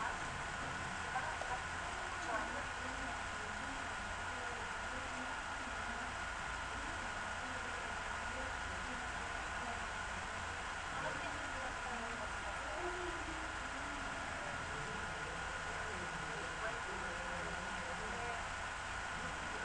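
A young woman talks calmly, heard faintly through a computer microphone.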